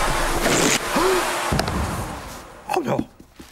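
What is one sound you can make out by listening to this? A vacuum cleaner roars loudly, then stops.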